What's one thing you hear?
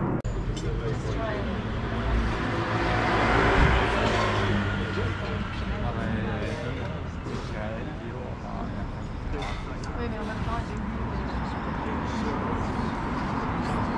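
Men and women chat at outdoor tables nearby.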